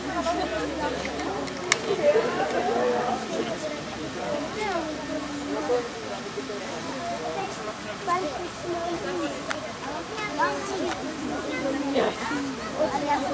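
Several adults and children talk and chatter nearby outdoors.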